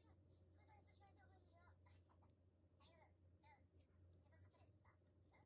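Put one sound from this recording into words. Sticky noodles squelch softly as they are stirred in a bowl.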